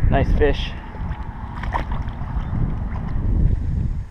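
A fish splashes into water.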